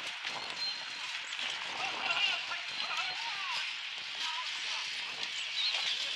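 Carriage wheels roll and rattle over dirt.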